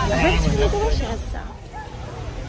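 A young woman speaks excitedly and close by.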